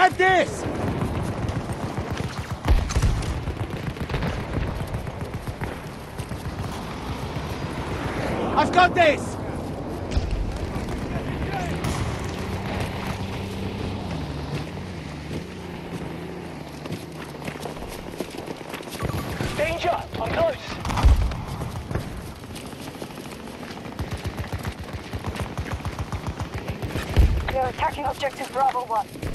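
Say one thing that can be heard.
Rapid gunfire rattles in bursts close by.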